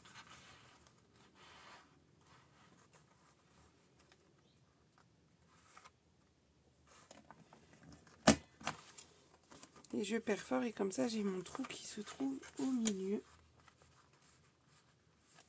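Paper rustles and slides under hands.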